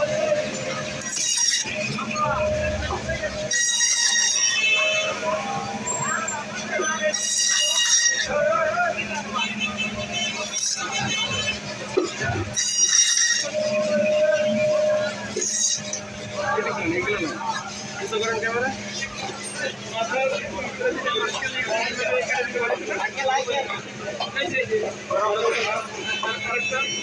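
A band saw motor hums steadily.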